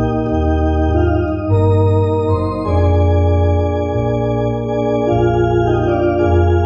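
An electric organ plays sustained chords with a deep bass line.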